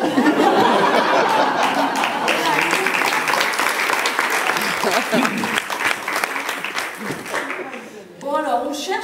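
Several women talk and laugh over one another in an echoing hall.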